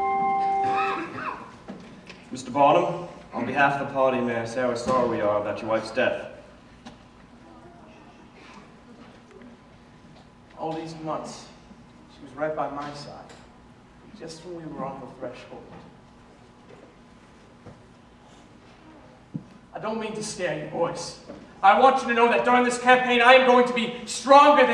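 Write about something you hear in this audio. A man speaks loudly and expressively in a large hall.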